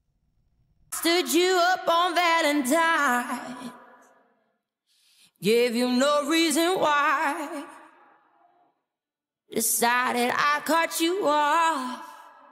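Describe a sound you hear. A woman sings powerfully with wide vibrato in long, held phrases.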